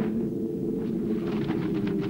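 Bowstrings twang as archers loose arrows.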